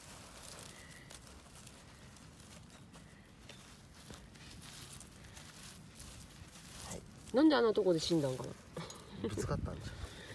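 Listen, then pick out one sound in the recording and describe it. A gloved hand rubs and crumbles dry soil.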